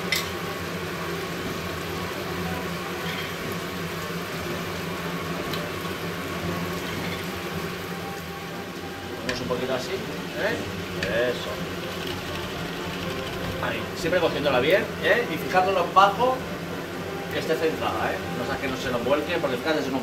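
A pan of food sizzles softly on a stove.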